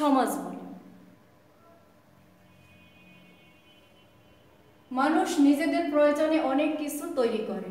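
A woman reads aloud close to the microphone.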